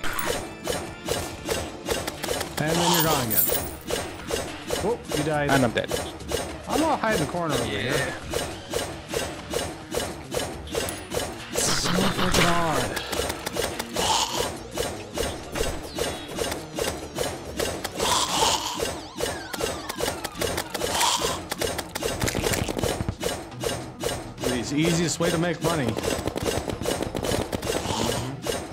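Rapid electronic hit sounds repeat in quick succession.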